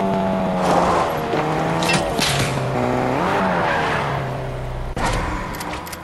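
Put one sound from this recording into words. A car engine roars and changes pitch as the car speeds along.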